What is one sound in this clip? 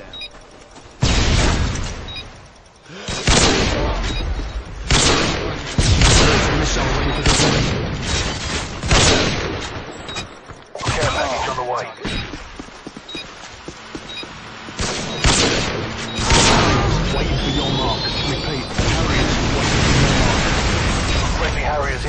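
Gunshots fire in loud, sharp bursts.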